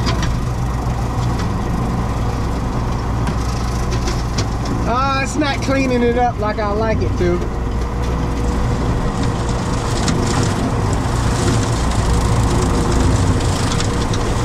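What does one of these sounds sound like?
A mower cuts through dry grass.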